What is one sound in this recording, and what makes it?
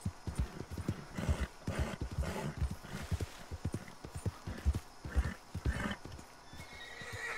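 Horse hooves thud rhythmically at a gallop over grass.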